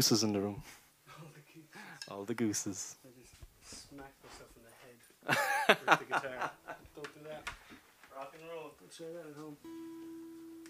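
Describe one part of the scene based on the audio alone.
A young man talks and laughs into a microphone.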